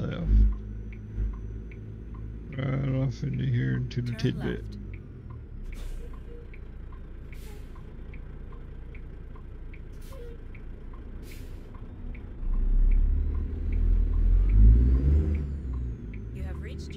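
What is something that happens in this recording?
A truck engine rumbles low and steadily, growing louder near the end.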